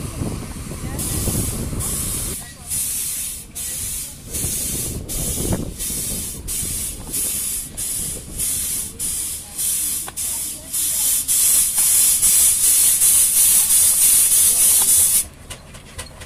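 A steam engine chuffs in quick, steady puffs and hisses steam outdoors.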